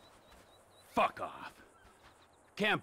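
A man speaks angrily, close by.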